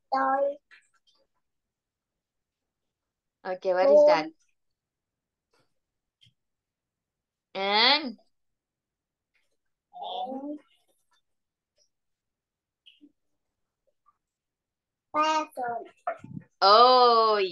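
A young girl answers in short phrases over an online call.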